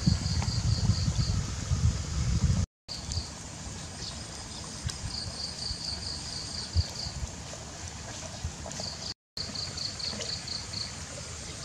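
Charcoal crackles softly in a small fire.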